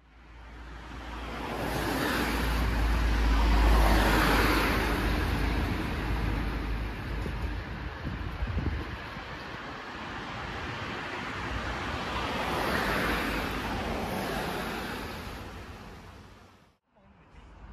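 A bus engine idles nearby.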